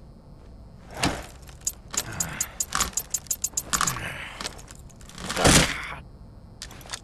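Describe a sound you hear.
A heavy barricade rattles and bangs as a door is forced open.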